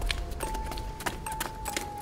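Footsteps tap on concrete.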